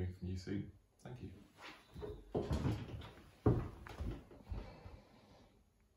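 Footsteps thud across a wooden floor as a man walks away.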